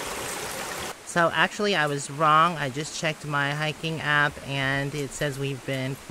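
A woman speaks calmly and close by, outdoors.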